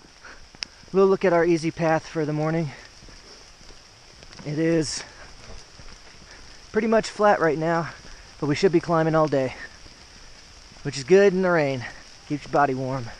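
A man talks close by, in short bursts.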